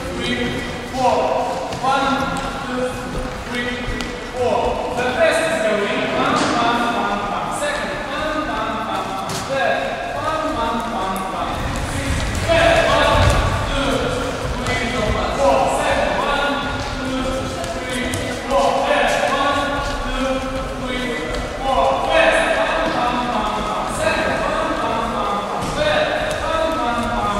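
Feet shuffle and step on a wooden floor.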